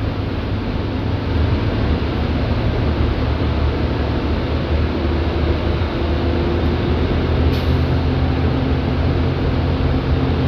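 A bus engine rumbles steadily while the bus drives along a road.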